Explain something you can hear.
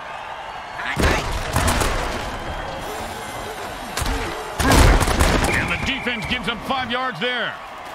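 Armoured players crash together with heavy thuds.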